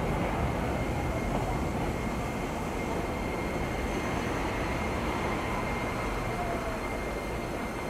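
A train rolls steadily along the tracks.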